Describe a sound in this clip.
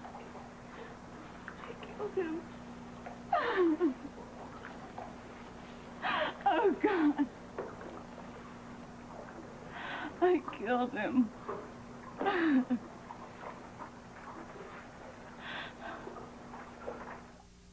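A young woman wails and sobs loudly nearby.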